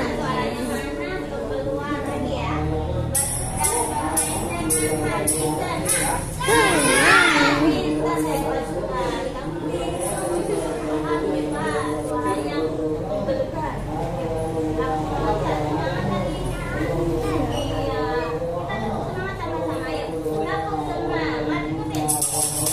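A woman talks to children nearby.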